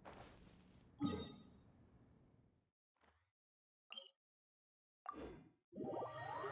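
A menu chimes and clicks.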